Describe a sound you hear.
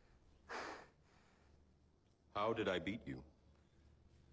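A man speaks calmly and slowly.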